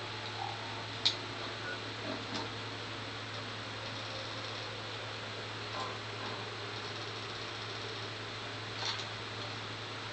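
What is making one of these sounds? Soft electronic menu clicks sound now and then.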